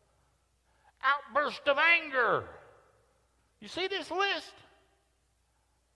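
A man speaks with animation into a microphone in a large echoing room.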